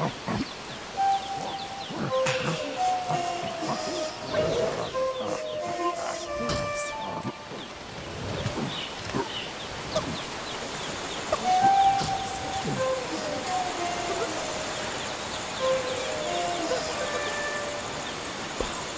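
Chimpanzees hoot and call nearby.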